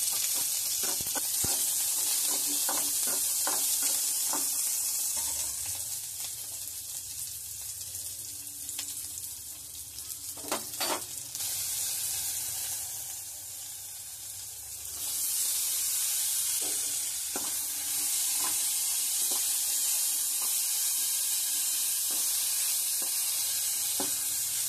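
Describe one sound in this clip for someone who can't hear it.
Onions sizzle and hiss in hot oil in a pan.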